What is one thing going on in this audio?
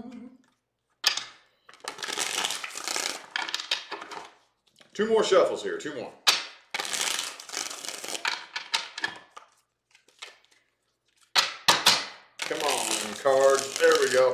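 A deck of cards riffles and shuffles with a crisp fluttering.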